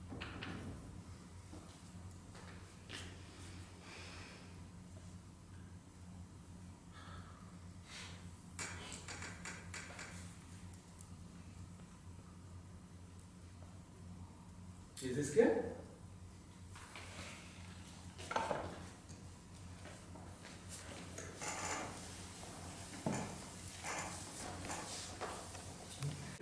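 A man speaks calmly, echoing slightly in a large room.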